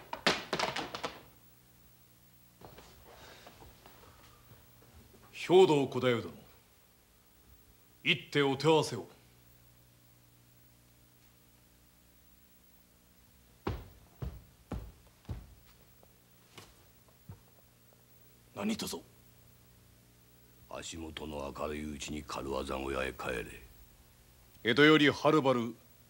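A man speaks forcefully in an echoing hall.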